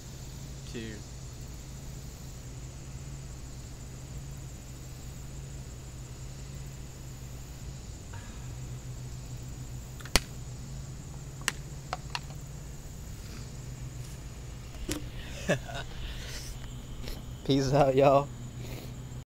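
A young man speaks briefly close by.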